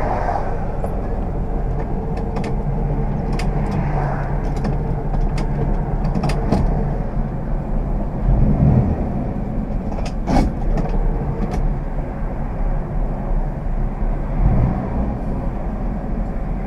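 An old car's engine rumbles steadily from inside the cabin.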